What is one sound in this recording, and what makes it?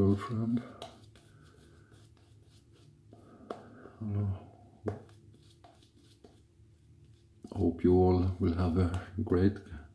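A shaving brush swishes lather on skin.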